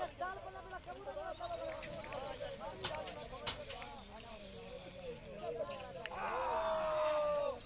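A flock of pigeons flaps its wings overhead.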